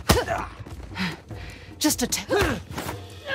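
A man grunts with effort during a fight.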